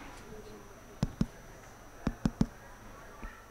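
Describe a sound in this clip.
A microphone thumps and clicks as it is handled.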